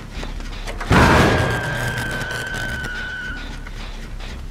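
A loud blast bursts out close by and slowly fades.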